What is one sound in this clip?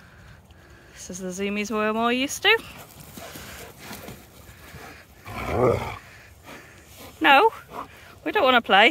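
A dog howls and whines loudly up close, in rising and falling cries.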